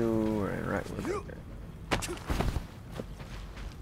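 Heavy boots land with a thud on a metal floor.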